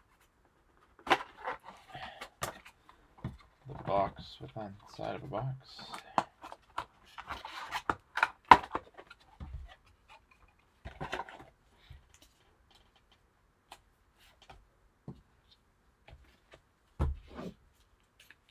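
A cardboard box is pulled open with scraping and tearing.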